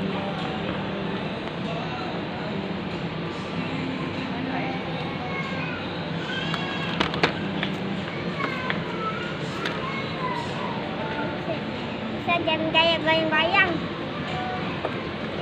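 A shopping cart rattles as it rolls.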